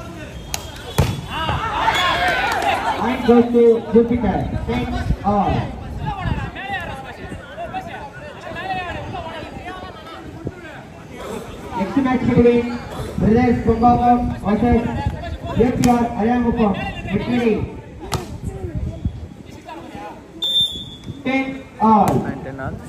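A volleyball is struck with a sharp slap of the hand.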